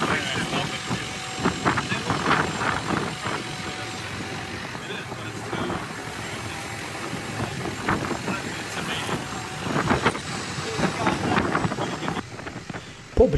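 Water splashes against a wooden boat's hull.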